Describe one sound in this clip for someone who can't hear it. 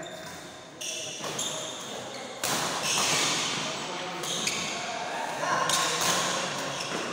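Chatter from a crowd echoes in a large hall.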